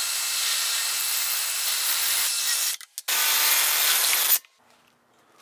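A cordless drill whirs as it drives a screw.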